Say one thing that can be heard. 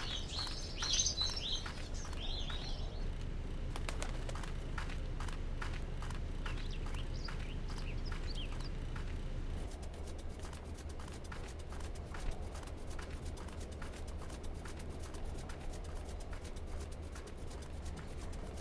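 Footsteps crunch steadily on frozen ground.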